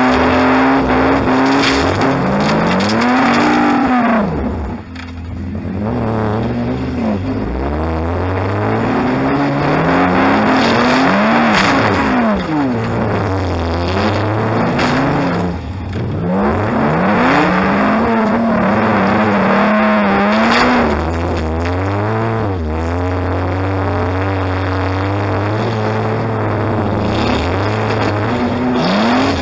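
A car engine revs hard up and down, loud and close from inside the car.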